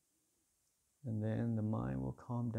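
A man speaks calmly and clearly into a microphone in a quiet, echoing hall.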